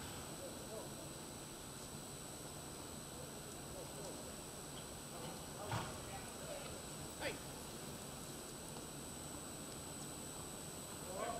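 Hooves thud on soft dirt as a horse darts back and forth.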